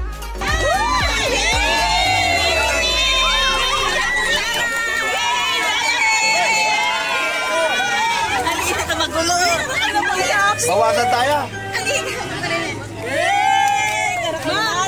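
A group of women sing and cheer loudly and excitedly nearby.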